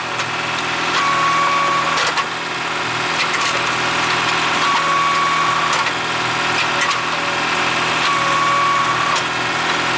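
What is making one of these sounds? A log splitter whines in short bursts as it pushes through wood.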